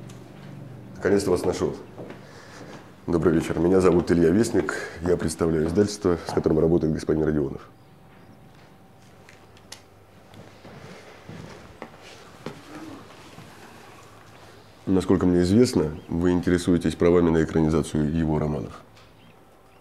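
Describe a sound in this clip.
A young man speaks calmly up close.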